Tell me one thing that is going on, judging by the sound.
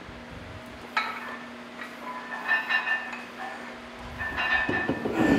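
A dumbbell clinks against metal as it is lifted.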